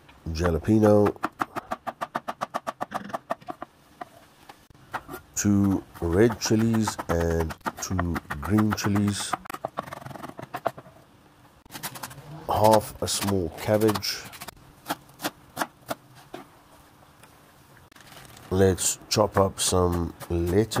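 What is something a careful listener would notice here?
A knife chops rapidly on a wooden board.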